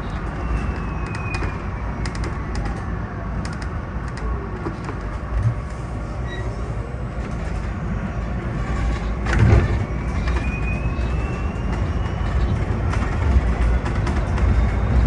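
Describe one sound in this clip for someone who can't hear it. The bus body rattles and knocks over the road.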